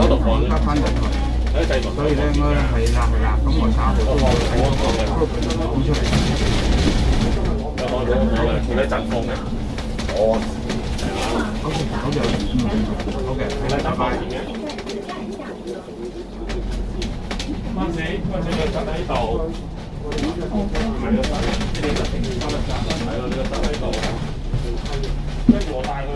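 A bus engine rumbles steadily.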